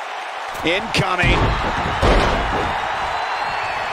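A body slams hard onto a wrestling ring mat.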